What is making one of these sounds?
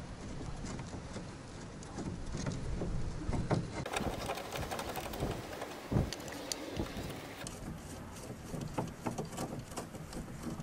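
A metal wrench clicks and clinks on a car's suspension bolt.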